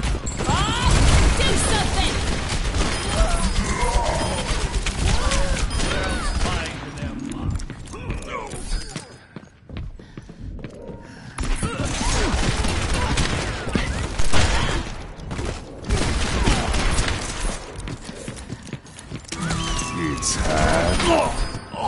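A revolver fires loud gunshots in quick bursts.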